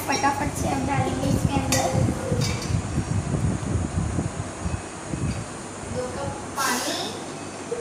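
Liquid pours into a metal pan.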